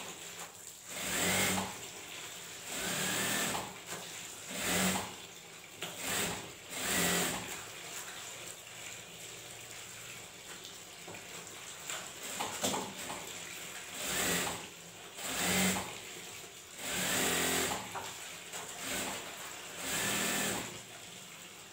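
A sewing machine whirs in short bursts.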